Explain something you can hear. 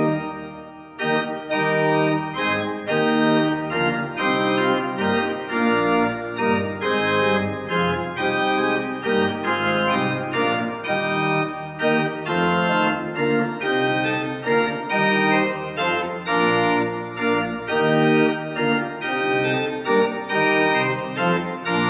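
A pipe organ plays a slow hymn in an echoing hall.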